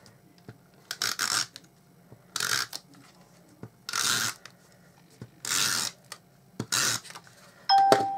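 A tape runner rasps across paper in short strokes.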